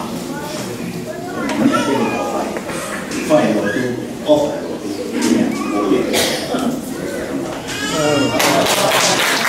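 An elderly man speaks slowly and calmly into a microphone in an echoing hall.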